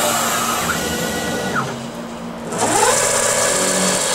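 A spindle motor winds down and then speeds back up.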